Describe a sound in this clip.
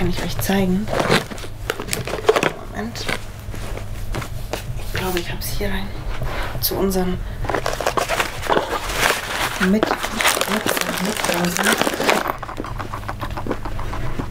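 Items rustle and thump as they are packed into a suitcase.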